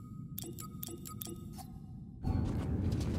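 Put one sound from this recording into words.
Soft menu clicks tick in quick succession.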